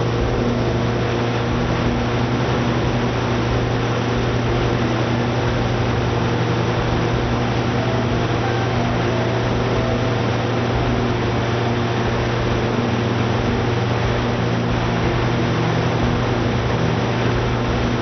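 A large engine runs with a steady, loud, low hum.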